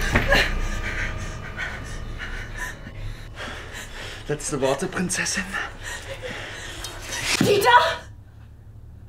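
A young woman pants and gasps close by.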